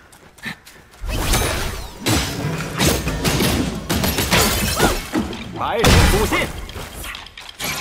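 A staff whooshes and strikes with heavy thuds in a loud fight.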